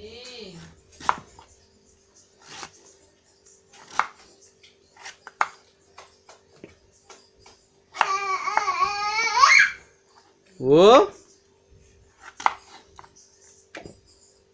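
A knife chops through pumpkin on a wooden board with sharp knocks.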